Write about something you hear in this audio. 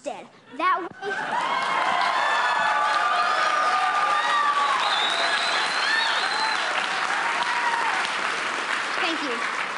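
An audience applauds and cheers in a large hall.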